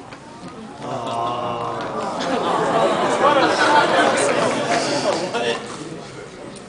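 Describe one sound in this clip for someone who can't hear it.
An audience laughs and chatters loudly.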